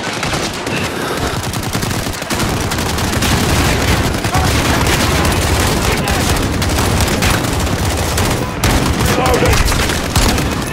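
Gunfire crackles rapidly and loudly.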